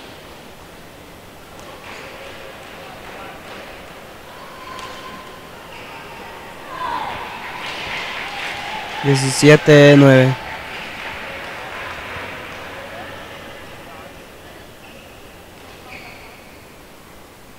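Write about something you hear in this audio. Rackets hit a shuttlecock with light sharp taps in a large echoing hall.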